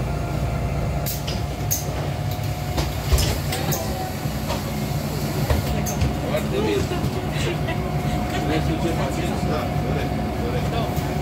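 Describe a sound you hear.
Loose fittings rattle and clatter inside a moving bus.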